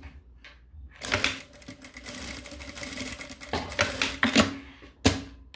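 A sewing machine runs, stitching quickly.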